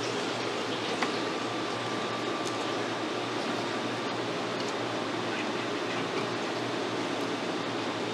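Foil-wrapped rolls rustle as they are placed in a metal steamer.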